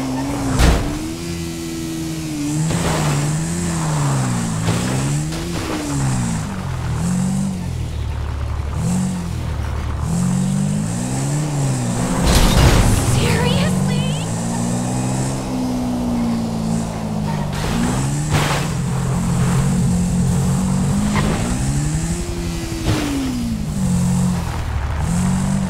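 A dirt bike engine revs up and down repeatedly.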